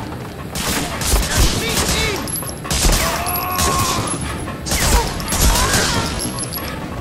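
A submachine gun fires in short, rapid bursts.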